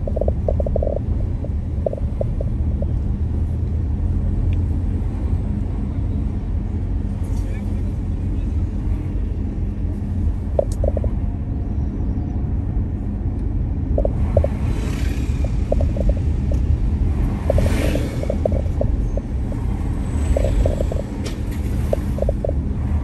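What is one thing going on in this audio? A vehicle engine hums and rumbles steadily on the road.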